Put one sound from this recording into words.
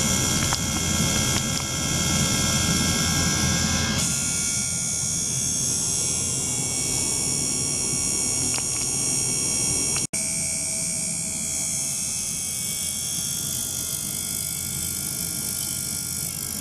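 An ultrasonic cleaner hums with a steady high buzz.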